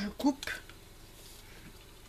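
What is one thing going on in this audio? Scissors snip through a ribbon.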